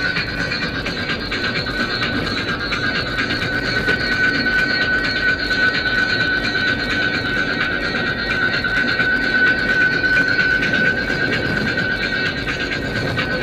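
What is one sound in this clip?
A car hums steadily as it drives along a motorway.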